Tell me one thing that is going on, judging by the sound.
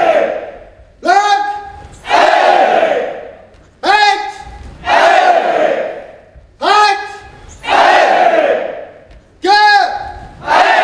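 A young man shouts sharply and loudly, again and again.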